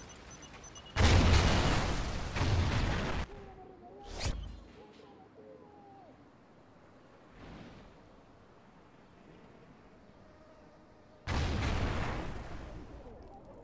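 Gunshots boom loudly in short bursts.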